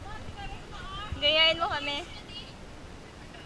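A young woman calls out nearby.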